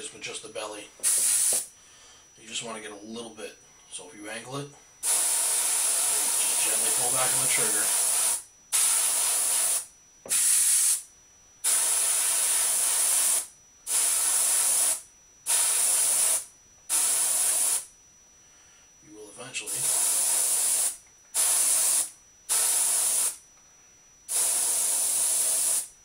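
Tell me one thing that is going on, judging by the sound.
An airbrush hisses in repeated bursts of spraying air.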